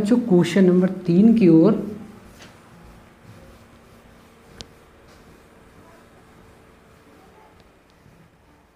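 A duster rubs against a whiteboard.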